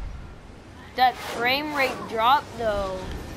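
Crackling, warbling electric zaps burst out in a game.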